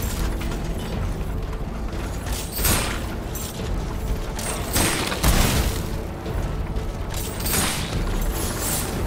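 Blades swish and slash in a fight.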